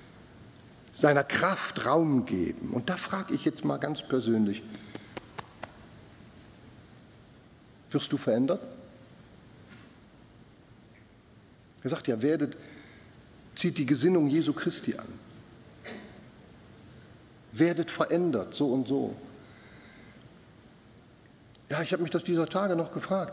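An elderly man speaks with emphasis into a microphone, with pauses between phrases, in a large hall.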